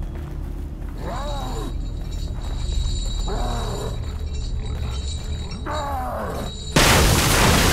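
A pig squeals and grunts nearby.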